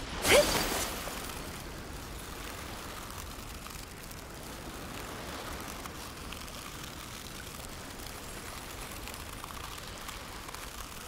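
Water swishes and gurgles steadily.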